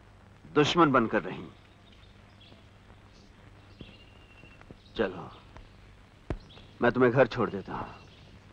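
A man speaks firmly and close by.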